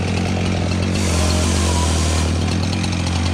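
A chainsaw cuts through a log.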